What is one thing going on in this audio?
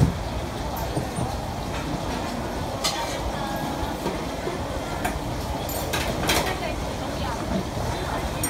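Metal utensils clink and scrape against pans and containers.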